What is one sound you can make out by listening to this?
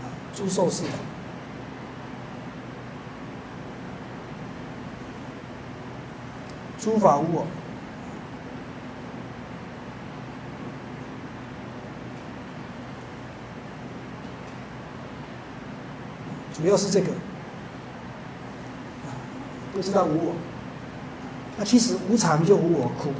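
A man speaks calmly in short phrases, with pauses between them.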